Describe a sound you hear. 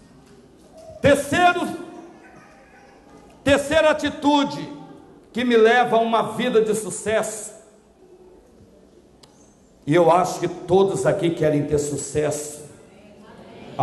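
A man preaches loudly and with animation through a microphone and loudspeakers, in bursts with pauses.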